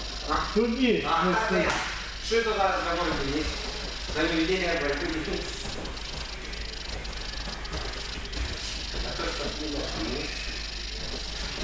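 A man talks loudly in an echoing hall.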